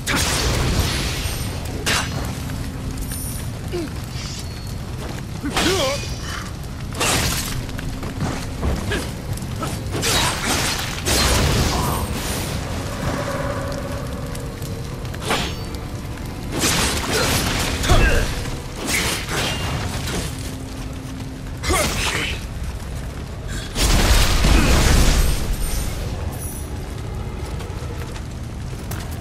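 Fires crackle and roar steadily.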